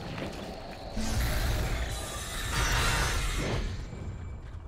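Spell blasts whoosh and burst.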